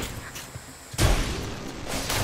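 A heavy magical blast crashes and rumbles.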